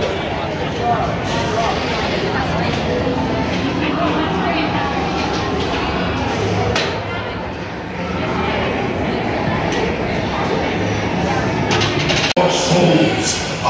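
A crowd of riders chatters and murmurs nearby, echoing in a large enclosed space.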